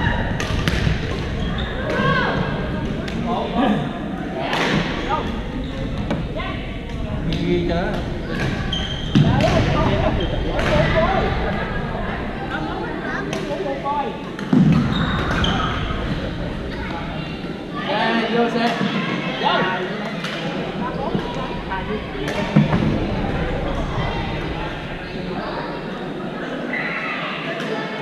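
Young men and women call out and chatter across the gym.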